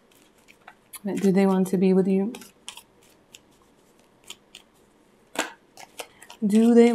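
Playing cards riffle and slide together as they are shuffled by hand.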